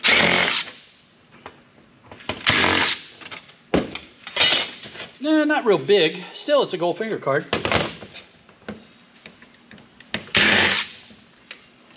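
A cordless drill whirs in short bursts, driving out screws.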